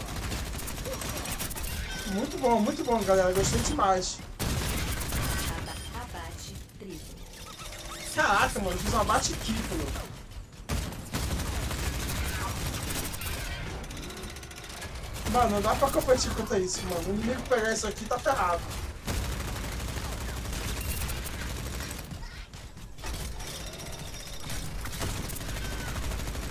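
Guns fire rapidly in a video game.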